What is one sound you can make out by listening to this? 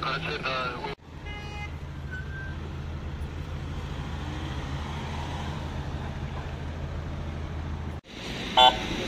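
An ambulance engine idles with a low rumble.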